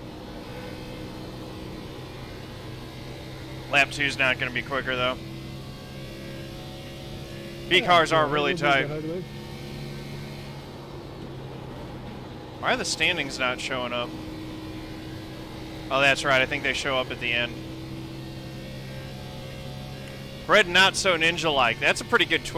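A race car engine drones steadily.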